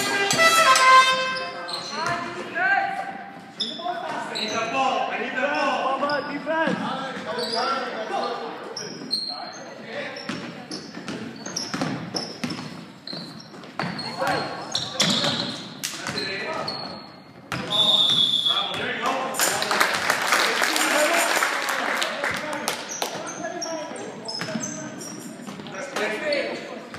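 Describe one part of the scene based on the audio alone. Spectators talk and shout from the stands.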